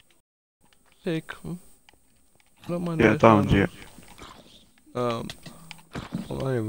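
A zombie groans nearby.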